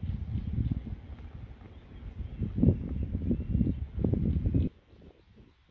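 Wind rumbles and buffets outdoors.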